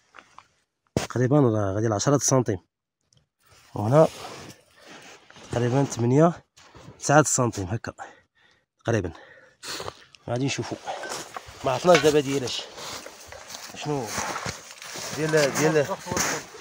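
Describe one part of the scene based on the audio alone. A man speaks calmly, close by, outdoors.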